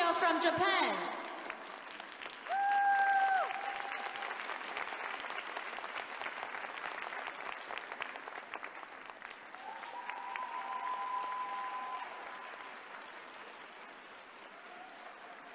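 A large crowd applauds and cheers in a big echoing arena.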